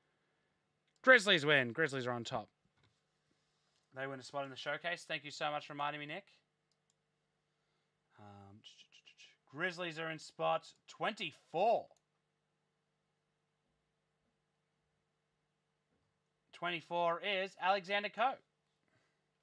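A young man talks with animation into a nearby microphone, in short bursts with pauses.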